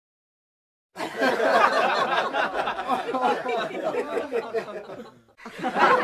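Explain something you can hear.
A woman laughs loudly nearby.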